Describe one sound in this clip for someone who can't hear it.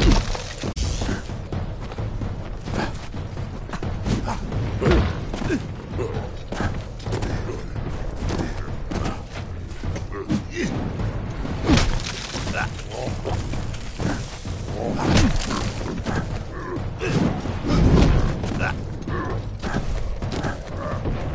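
Heavy blows and clashing weapons thud and crack in a fierce battle.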